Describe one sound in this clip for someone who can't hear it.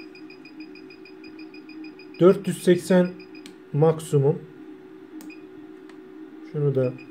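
Small buttons click as a finger presses them.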